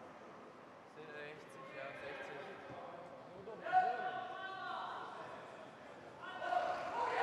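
A young man speaks calmly close by.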